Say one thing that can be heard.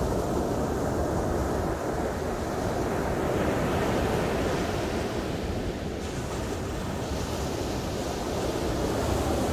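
Waves break and wash up on a shore.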